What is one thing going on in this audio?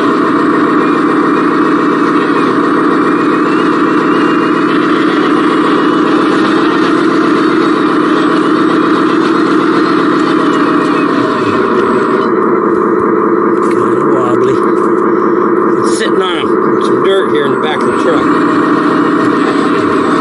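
A small toy vehicle's electric motor whines steadily as it drives over dirt and dry leaves.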